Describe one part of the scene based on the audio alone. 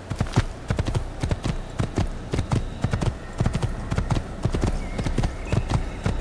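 A horse gallops quickly along a dirt path, its hooves thudding in a steady rhythm.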